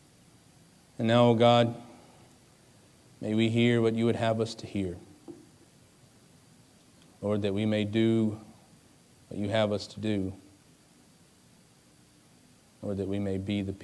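A young man speaks slowly and calmly into a microphone, with long pauses.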